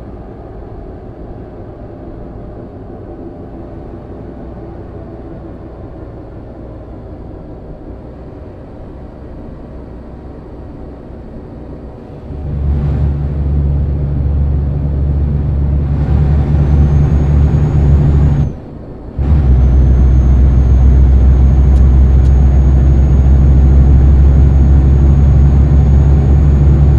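A truck engine rumbles steadily while driving, growing louder partway through.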